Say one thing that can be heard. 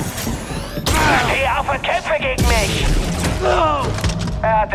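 Blasts and clashes ring out in a fight.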